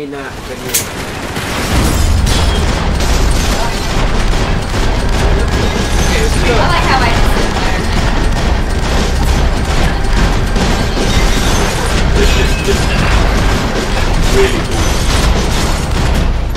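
Gunshots fire in rapid bursts, with bullets smacking into walls.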